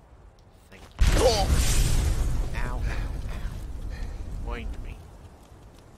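A fireball bursts with a loud whoosh.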